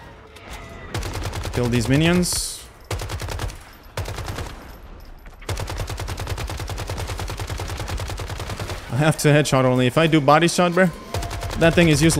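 Rapid rifle gunfire rattles.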